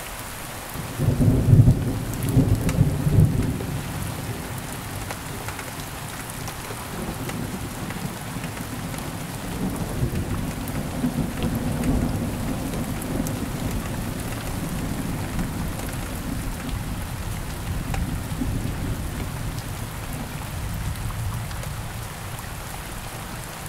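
Thunder cracks loudly nearby and rolls on in a long, deep rumble.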